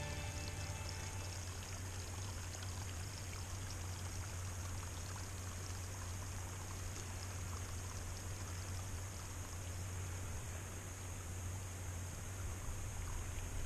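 A small stream trickles over rocks nearby.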